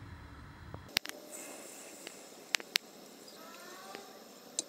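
A thin stream of liquid pours into liquid.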